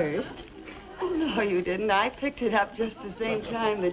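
A second woman answers in a lively voice nearby.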